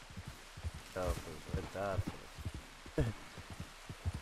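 A young man talks through a microphone, casually.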